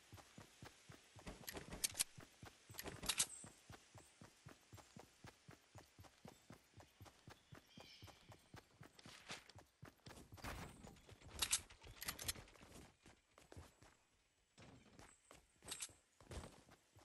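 Quick footsteps run over grass and then up wooden stairs.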